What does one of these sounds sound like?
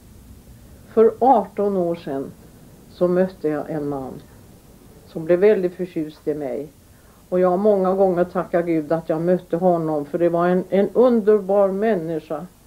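An elderly woman speaks calmly and close by, in short phrases with pauses.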